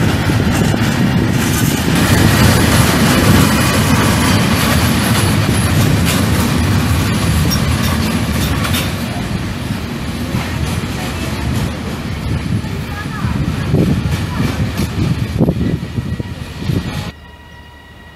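Empty freight wagons rumble and clatter over rail joints as they pass close by.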